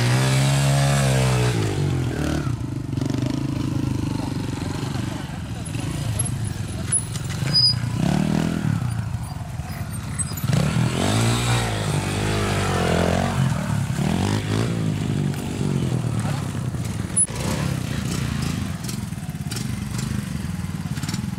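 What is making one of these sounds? A motorcycle engine revs and sputters.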